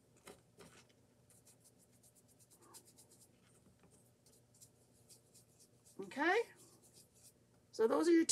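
A sponge dabs softly against a powder compact.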